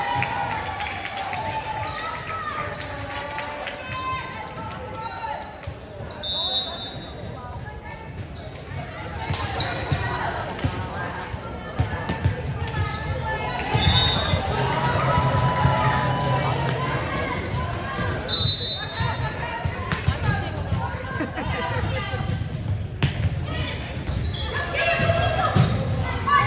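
Young women call out and shout to each other in a large echoing gym.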